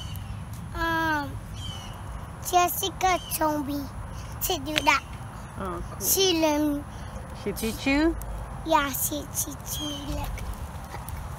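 A little girl talks in a high voice close by.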